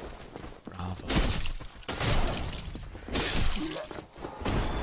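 A sword slashes and strikes with sharp metallic hits.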